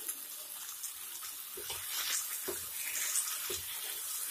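A spatula stirs and scrapes food in a pan.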